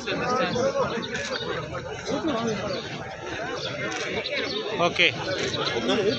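A crowd of men talk over one another nearby.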